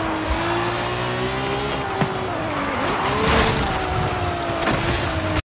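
A sports car engine roars at high revs, dropping in pitch briefly before climbing again.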